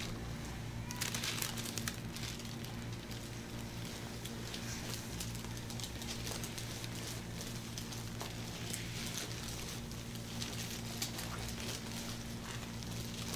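Gloved hands rub and slide over oiled skin with soft squelching sounds.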